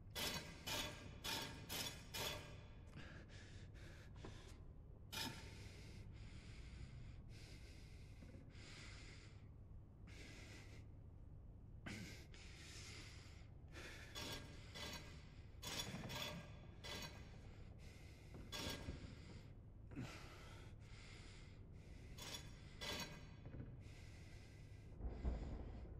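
Stone discs grind and click as they rotate into place.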